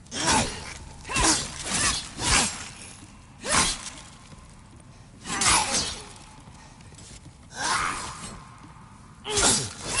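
Sword blows strike an enemy in quick bursts.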